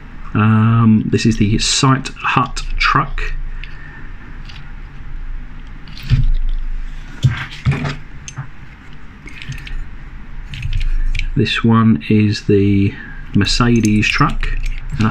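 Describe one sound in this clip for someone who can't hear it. A small metal toy truck clicks and rattles as fingers turn it over.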